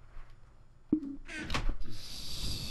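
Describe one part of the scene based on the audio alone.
A wooden chest creaks shut.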